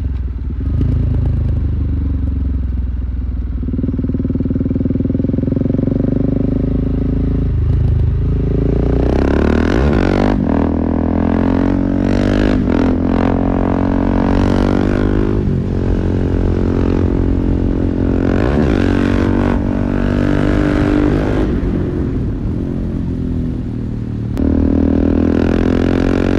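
A motorcycle engine roars loudly close by, revving up and shifting gears.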